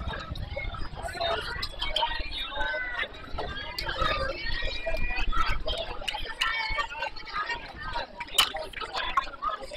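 Children chatter and call out across an open field.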